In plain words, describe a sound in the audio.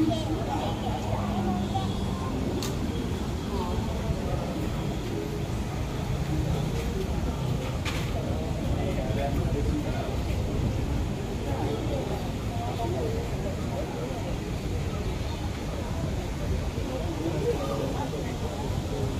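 A crowd of men and women chatters nearby in the background.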